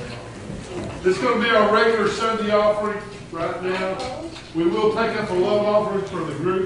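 An older man speaks loudly into a microphone in a large echoing hall.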